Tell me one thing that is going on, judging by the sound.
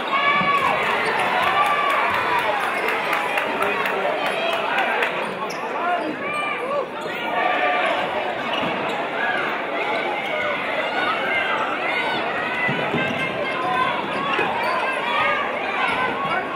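A crowd of spectators murmurs and cheers in a large echoing gym.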